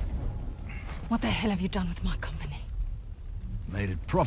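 A woman speaks firmly and calmly.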